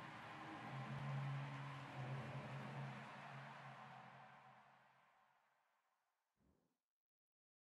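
An electric guitar chord rings out and slowly fades away.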